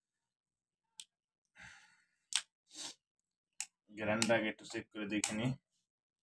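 A plastic bottle cap is twisted open with a crackle.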